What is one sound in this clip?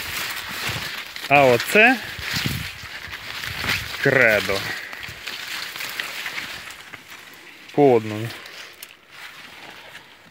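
Corn leaves rustle and brush as someone walks through them.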